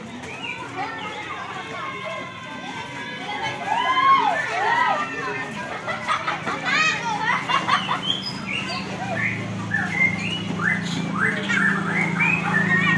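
Many children chatter and call out nearby, outdoors.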